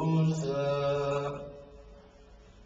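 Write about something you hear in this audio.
A man chants into a microphone in a held, melodic voice.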